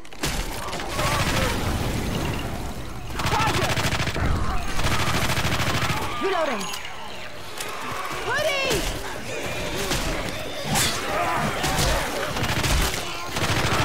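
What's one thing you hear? Zombies snarl and growl.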